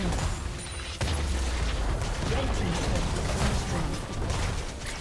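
Fantasy game combat effects clash and boom in quick bursts.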